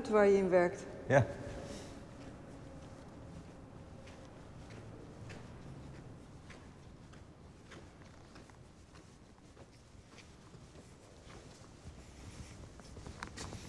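Footsteps walk across a hard floor in a large echoing hall.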